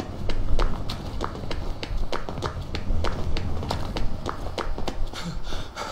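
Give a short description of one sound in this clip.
Quick footsteps run on hard wet stone.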